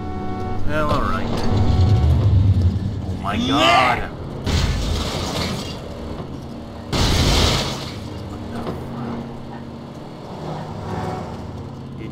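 A car engine revs and rumbles as a car drives off.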